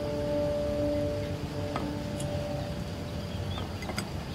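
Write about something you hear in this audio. A plate clinks as it is picked up from a table.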